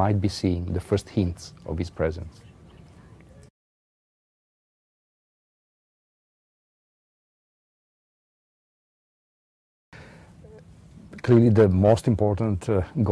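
A middle-aged man speaks calmly and with animation into a close microphone.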